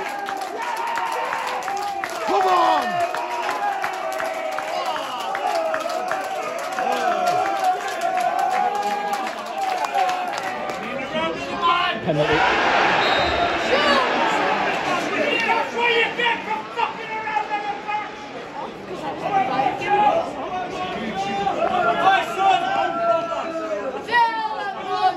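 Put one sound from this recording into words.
A large crowd of football fans sings and chants loudly outdoors.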